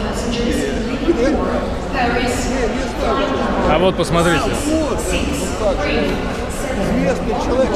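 An elderly man speaks calmly and close by, in a large echoing hall.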